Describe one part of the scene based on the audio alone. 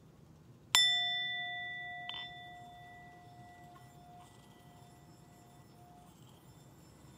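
A metal singing bowl is struck and rings out clearly, slowly fading.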